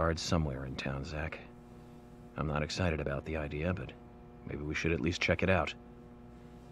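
A man speaks calmly and evenly, heard through a recording.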